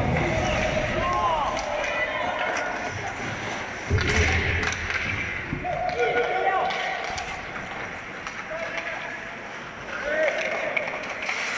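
Skates scrape and hiss across the ice in an echoing rink.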